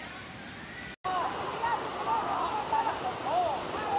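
A waterfall rushes and splashes steadily.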